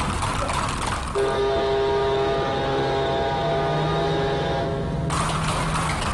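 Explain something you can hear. Horse hooves clatter on stone cobbles.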